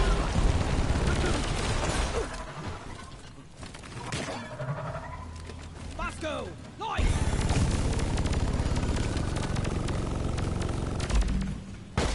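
A weapon fires rapid, buzzing energy bursts.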